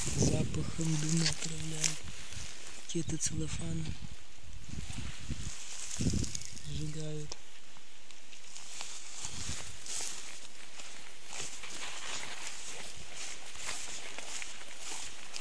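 Grass and leaves rustle as someone pushes through undergrowth.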